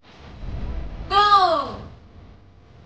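A young woman exclaims in surprise close by.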